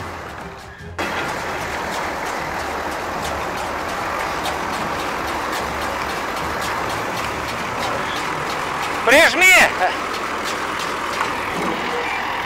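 A hay baler's machinery clatters and whirs close by.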